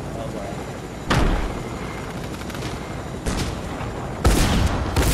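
An engine roars steadily.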